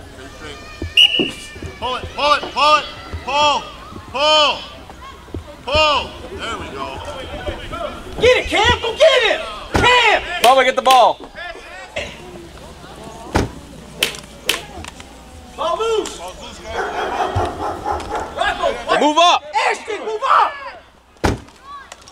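Children shout excitedly outdoors.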